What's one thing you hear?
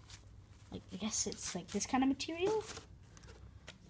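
Tissue paper rustles and crinkles as a hand pulls it.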